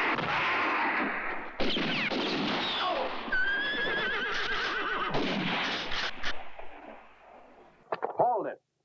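Horses gallop and whinny.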